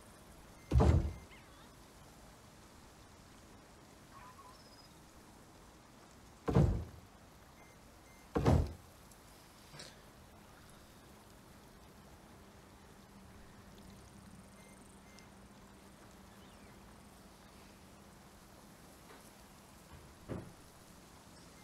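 Heavy wooden pieces thud into place.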